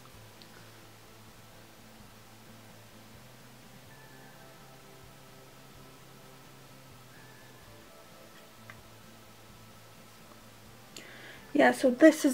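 A makeup brush brushes softly across skin.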